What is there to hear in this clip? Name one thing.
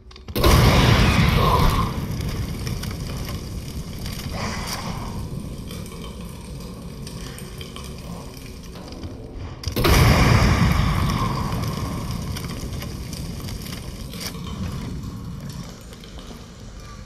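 A loud explosion booms and fire roars, then slowly fades.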